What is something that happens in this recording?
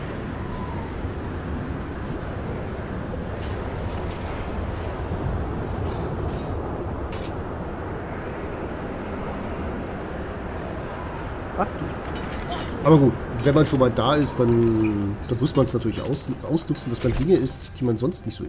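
Wind roars steadily in a sandstorm.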